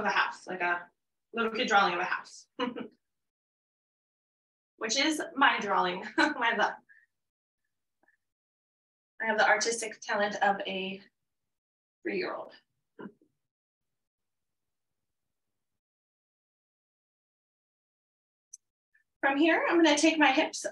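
A woman speaks calmly through a microphone, pausing between phrases.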